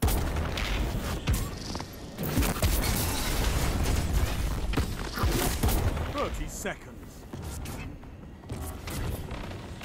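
Energy blasts crackle and whoosh.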